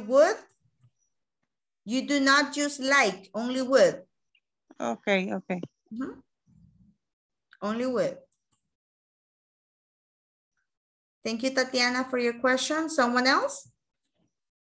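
A woman speaks calmly over an online call, with pauses.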